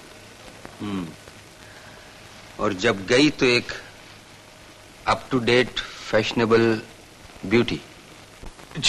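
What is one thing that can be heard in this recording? A man speaks in a low, strained voice, heard through an old film soundtrack.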